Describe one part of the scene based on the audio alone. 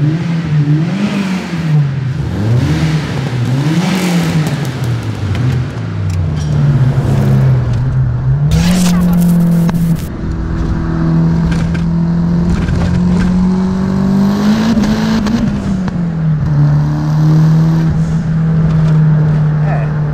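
A car engine revs up and down, then drones steadily while driving.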